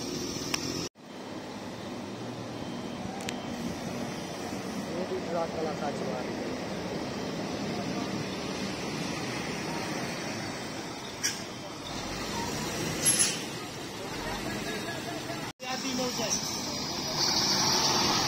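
A bus engine revs as the bus turns and drives past.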